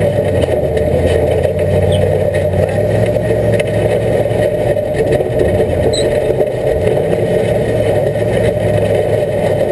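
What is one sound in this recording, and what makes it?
An off-road vehicle's engine rumbles steadily as it drives over rough ground.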